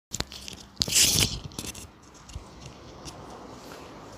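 A microphone rustles as it is handled.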